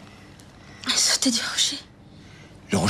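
A young woman murmurs weakly up close.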